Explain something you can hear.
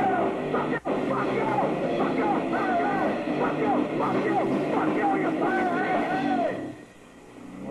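A live rock band plays loudly with drums and electric guitars.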